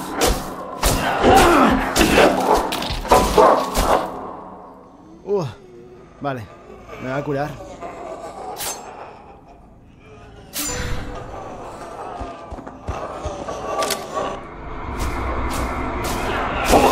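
A knife stabs into flesh with wet thuds.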